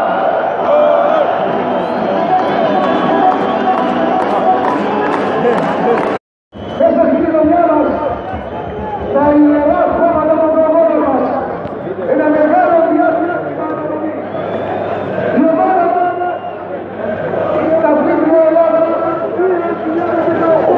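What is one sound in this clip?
A large crowd of fans chants and sings loudly in an open stadium.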